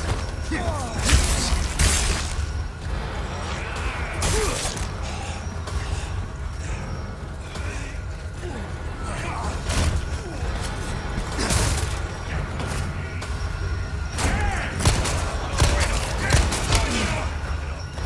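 A man grunts and shouts angrily up close.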